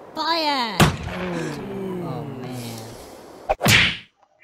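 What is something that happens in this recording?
A cartoonish man groans in dismay.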